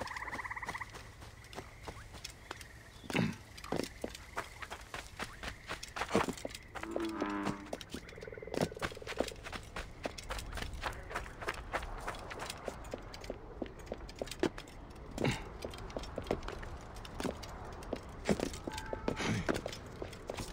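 Footsteps crunch and scrape on sand and rock.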